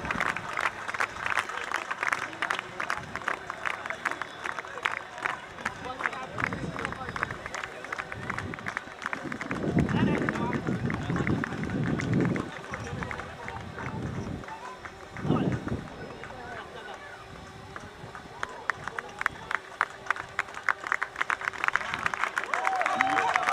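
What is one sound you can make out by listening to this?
A crowd claps steadily outdoors.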